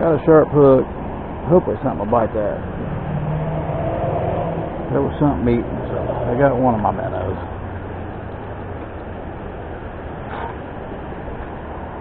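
A shallow river flows and ripples nearby.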